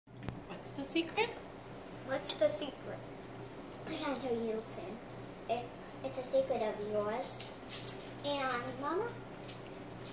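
A young girl talks close by in a high, lively voice.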